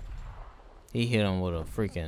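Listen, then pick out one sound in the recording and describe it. Gunfire rattles in a game as bullets strike.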